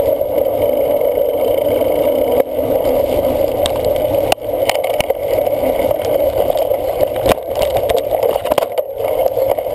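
Wind rushes past a moving cyclist.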